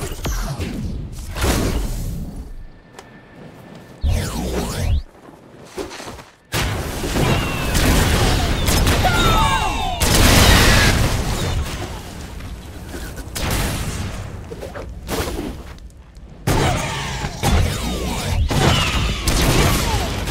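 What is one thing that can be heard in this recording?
Gunfire blasts in bursts.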